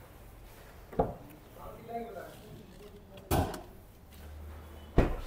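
A car door clunks.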